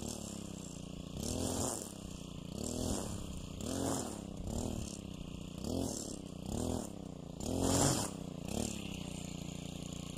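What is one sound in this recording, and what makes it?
A string trimmer engine drones and revs up in repeated surges.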